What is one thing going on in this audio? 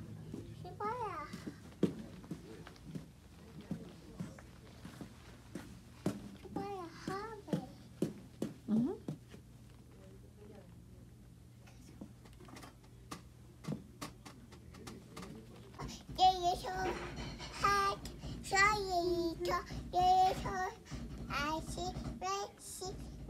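A small child babbles and squeals in a high voice nearby.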